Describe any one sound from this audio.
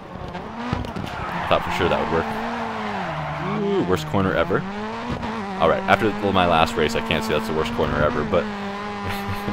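Tyres screech as a racing car slides through a corner.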